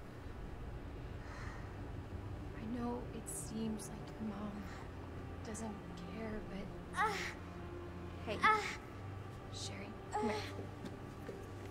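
A young woman speaks gently and calmly.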